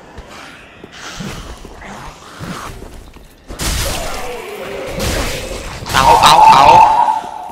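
A sword swings and strikes bodies with heavy blows.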